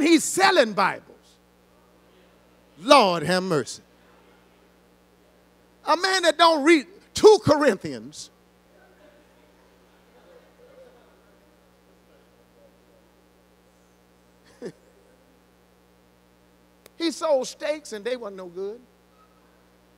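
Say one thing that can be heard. A man speaks with animation into a microphone through loudspeakers in an echoing hall, pausing between phrases.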